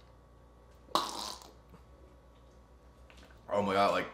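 A young man gulps a drink from a bottle.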